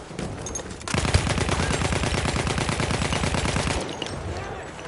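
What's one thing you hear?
A rifle fires rapid shots in loud bursts.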